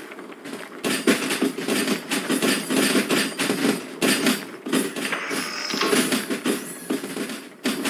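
A steam locomotive rumbles and hisses nearby.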